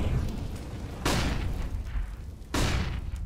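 A grenade bursts with a loud, sharp bang that echoes off.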